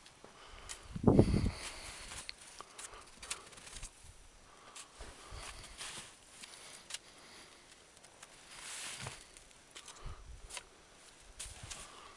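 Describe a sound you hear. Hiking boots crunch on packed snow.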